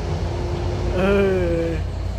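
A truck horn blares with a melodic tone.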